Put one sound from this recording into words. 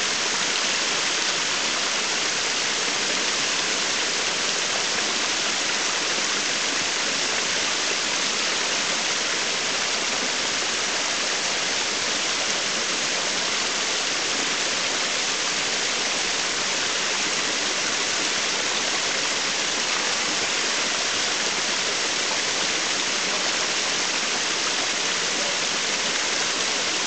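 A waterfall splashes and rushes steadily down a rock face.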